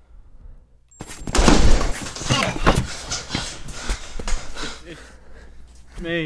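Bodies scuffle and thump in a struggle.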